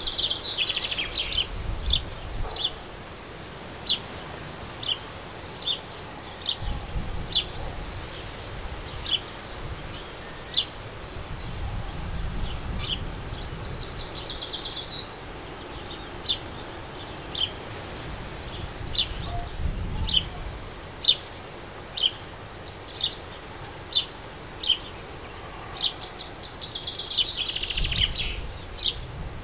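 Small birds chirp and twitter close by.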